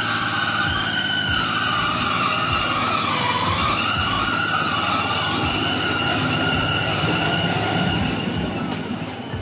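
A small rail cart rumbles and clatters past along a track.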